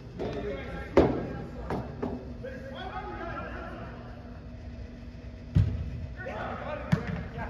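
A soccer ball is kicked with sharp thuds that echo in a large hall.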